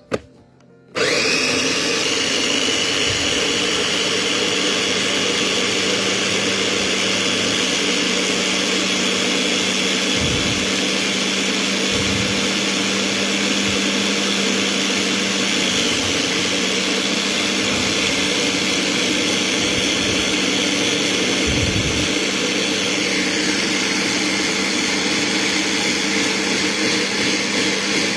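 An electric blender whirs loudly and steadily, chopping leafy greens into a liquid.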